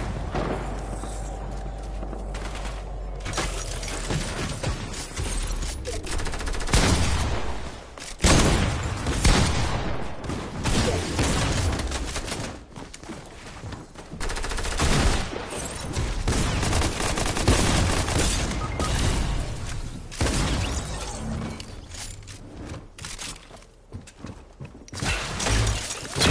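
Wooden walls and ramps clatter as they are built in quick succession.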